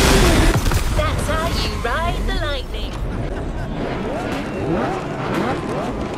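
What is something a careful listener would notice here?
Sports car engines rev and rumble in a row of idling cars.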